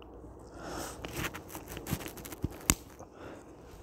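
Plastic buckle parts click and rattle against pliers.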